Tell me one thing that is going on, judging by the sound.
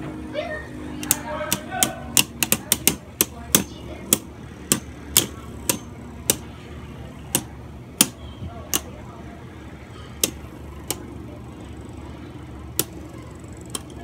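Spinning tops clack sharply against each other, again and again.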